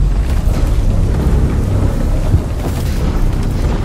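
Footsteps scrape quickly on stone.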